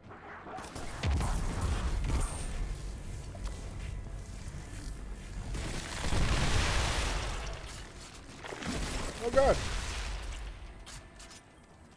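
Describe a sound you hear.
Loud blasts and crackling energy bursts erupt in quick succession.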